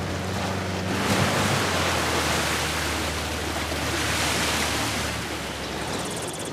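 Water splashes loudly as a vehicle drives through a river.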